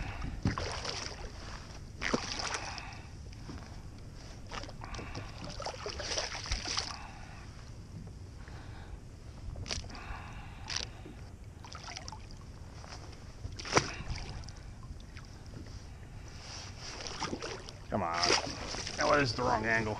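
A fish splashes and thrashes at the water's surface close by.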